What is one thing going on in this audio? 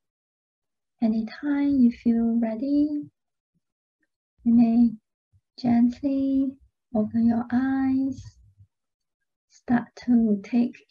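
A young woman speaks calmly and softly into a close microphone, with pauses.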